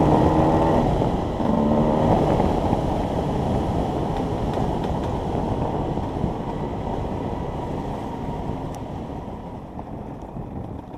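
A dirt bike engine revs loudly up close, rising and falling in pitch.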